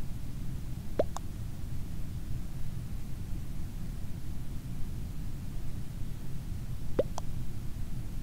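A short electronic game blip sounds twice.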